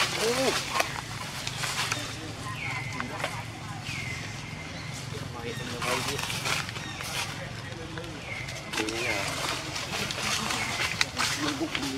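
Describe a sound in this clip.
Leaves rustle as monkeys climb through a tree.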